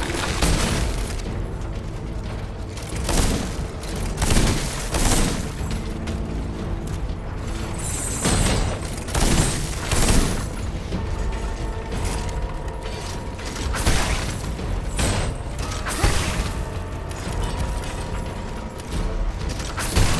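Sword slashes and magic blasts strike again and again in a fight.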